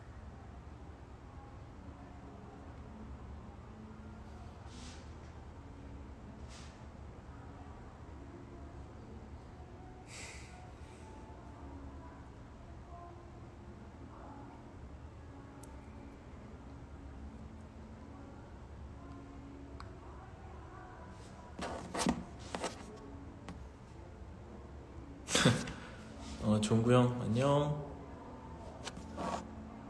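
A man speaks softly and calmly close to a phone microphone.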